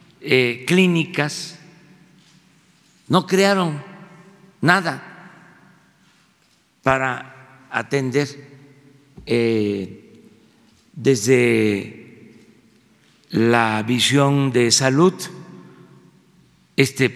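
An elderly man speaks calmly into a microphone, with pauses, in a reverberant room.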